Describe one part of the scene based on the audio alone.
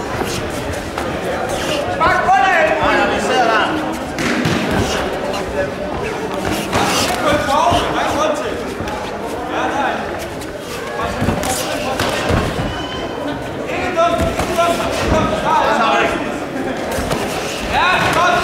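Punches thud against gloves and bodies.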